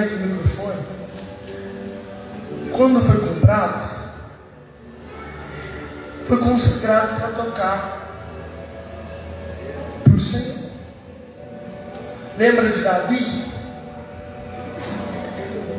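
A young man speaks with animation into a microphone, heard through loudspeakers in a large echoing space.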